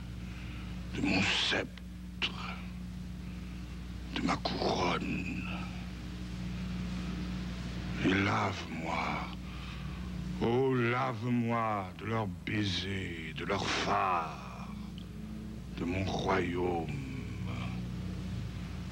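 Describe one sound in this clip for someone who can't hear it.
An elderly man speaks slowly and gravely, in short phrases with pauses.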